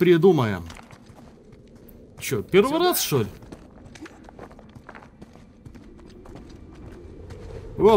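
Footsteps scuff over loose stone.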